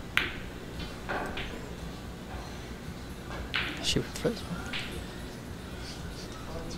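Snooker balls knock together and roll across the cloth.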